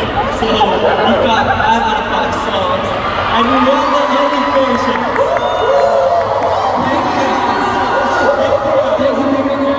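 A young man speaks into a microphone over loudspeakers.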